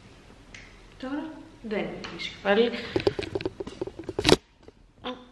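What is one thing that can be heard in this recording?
A young woman speaks warmly and close to the microphone.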